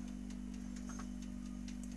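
Seeds patter softly onto a hard surface.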